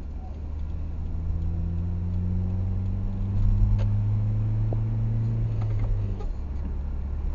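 A car engine's pitch rises as it speeds up, then drops.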